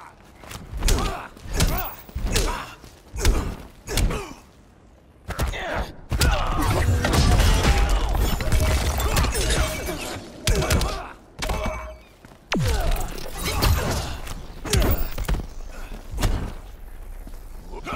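Punches and kicks land with heavy thuds in quick bursts.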